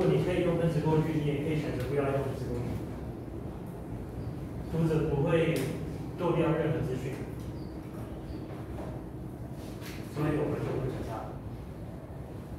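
A man lectures, speaking calmly.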